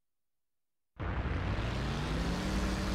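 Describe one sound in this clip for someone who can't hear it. A car engine revs and rises in pitch.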